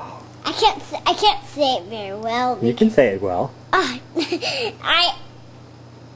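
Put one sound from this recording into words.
A young girl talks and laughs close by.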